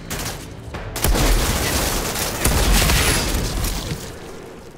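Gunfire blasts and an explosion booms loudly.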